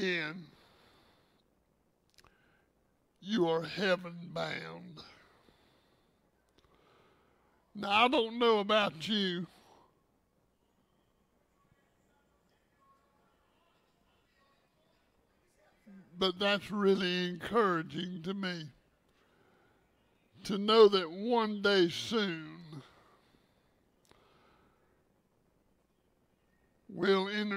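An elderly man speaks calmly through a microphone in short phrases with long pauses.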